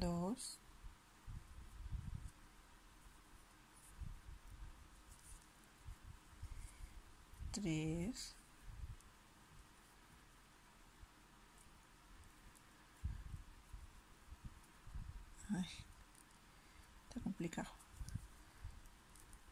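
A crochet hook softly rustles and clicks through yarn.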